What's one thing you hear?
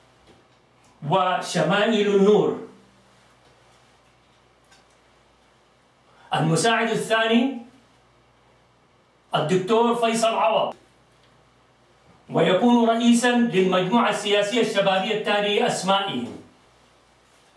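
An elderly man speaks calmly into a microphone, in short phrases with pauses.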